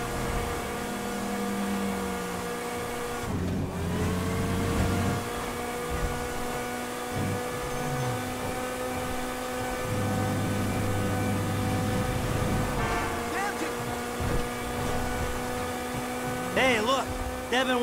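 A sports car engine drones steadily at high speed, dipping briefly as it shifts gear.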